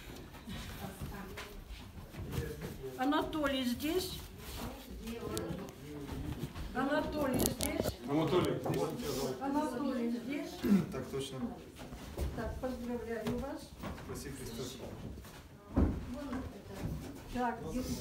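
Paper pages rustle as booklets are handled.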